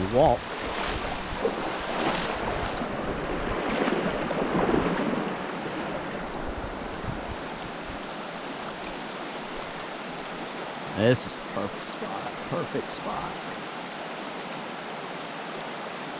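A shallow stream babbles and trickles steadily outdoors.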